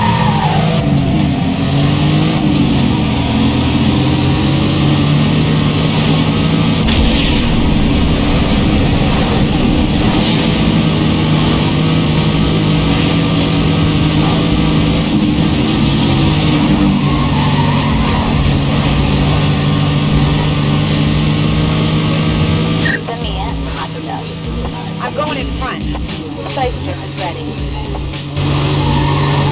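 A racing car engine roars loudly at high speed.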